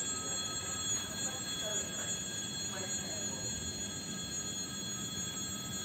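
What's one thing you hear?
A train's wheels clatter over rail joints.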